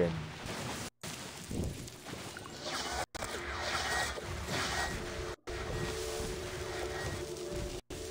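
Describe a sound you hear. Magic spells whoosh and crackle in a fast fight.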